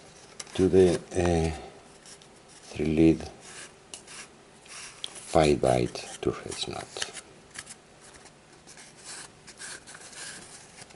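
A thin wire rustles and scrapes softly as it is wound around a tube.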